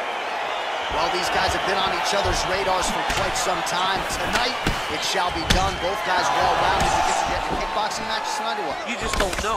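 Fists thud against bodies in quick blows.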